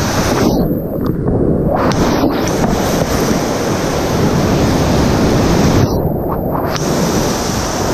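Water splashes against a kayak and paddle.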